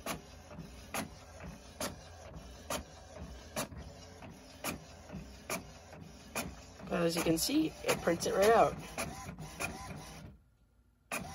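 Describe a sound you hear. A printer ticks in a steady rhythm.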